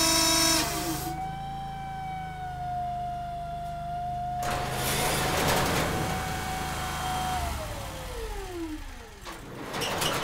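A power steering pump whines at high speed, then winds down.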